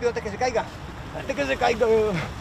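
A man talks nearby outdoors.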